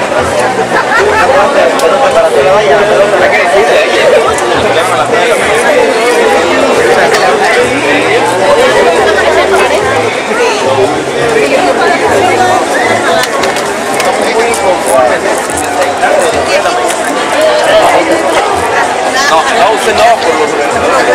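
A crowd of men and women chatter close by outdoors.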